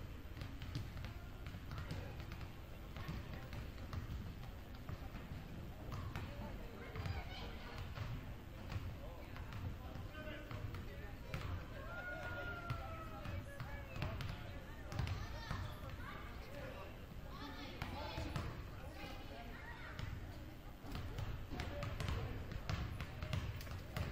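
Basketballs bounce on a wooden court in a large echoing gym.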